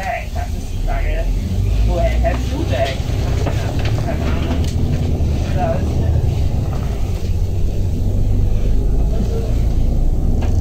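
A vehicle engine rumbles low as the vehicle pulls away and picks up speed.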